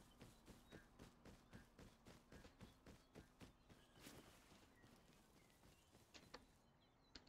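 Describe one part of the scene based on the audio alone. Footsteps crunch softly on the ground.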